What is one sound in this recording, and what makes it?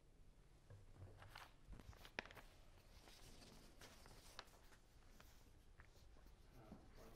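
Footsteps walk across a hard floor in a quiet, echoing room.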